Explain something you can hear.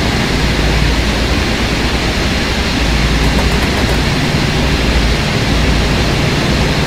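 Train wheels clatter rhythmically over the rails.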